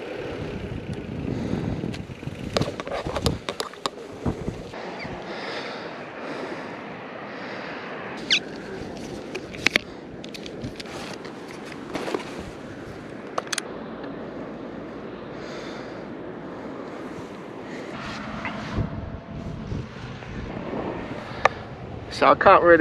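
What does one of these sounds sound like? Wind rushes over the microphone outdoors.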